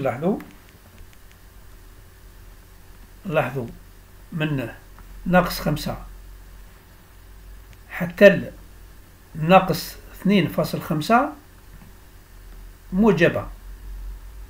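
A man explains calmly into a microphone, speaking in short bursts with pauses.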